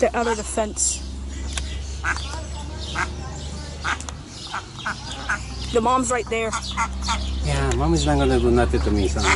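Ducklings peep in short, high chirps close by.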